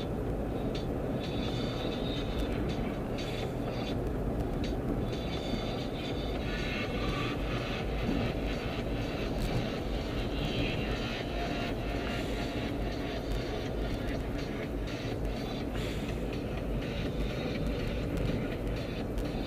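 Tyres roll and rumble on the road surface.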